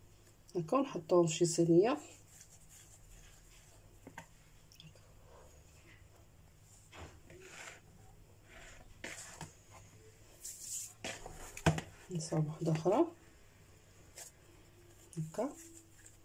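Hands softly press and knead dough.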